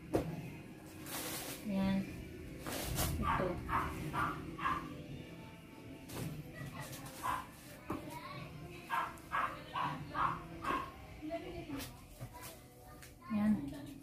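Cloth rustles as shirts are unfolded and shaken.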